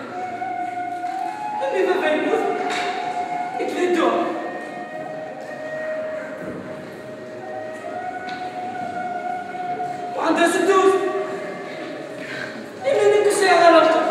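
A young man speaks with animation through a microphone in an echoing hall.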